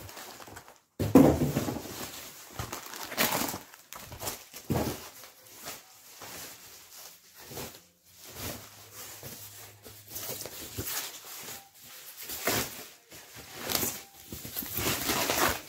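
Plastic wrapping crinkles and rustles loudly, close by.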